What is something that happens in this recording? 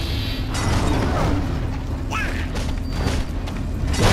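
A magic shield crackles and hums.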